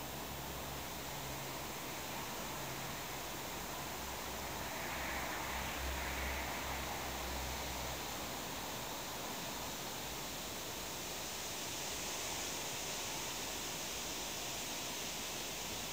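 Footsteps crunch on gravel at a distance.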